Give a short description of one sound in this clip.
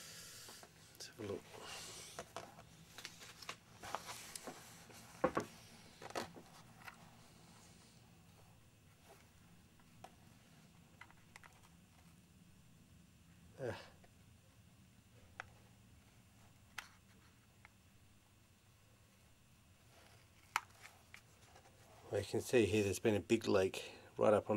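Fingers handle a plastic model with soft taps and rustles.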